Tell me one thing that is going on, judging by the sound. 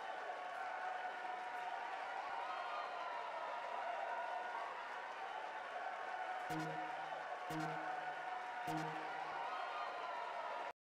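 A large crowd cheers and murmurs in an open stadium.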